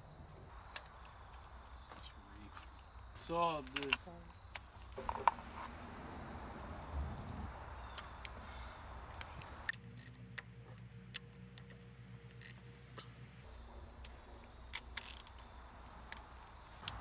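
Metal tools clink and tap against an engine.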